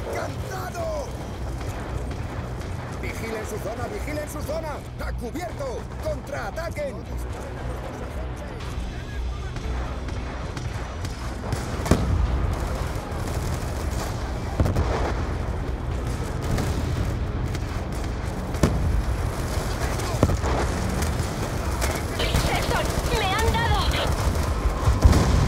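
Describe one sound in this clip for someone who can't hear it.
Explosions rumble low and heavy.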